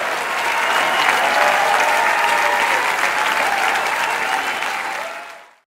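A large audience applauds loudly in an echoing hall, then the applause fades out.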